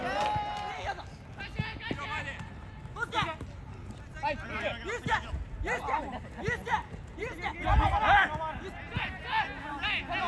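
Young male players shout to each other across an open field.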